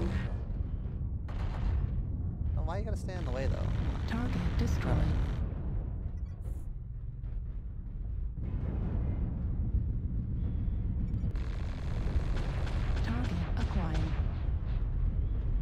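Explosions boom and crackle again and again.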